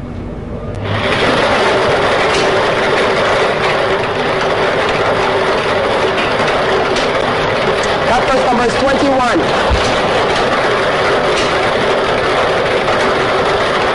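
Lottery balls rattle and tumble in a spinning drum.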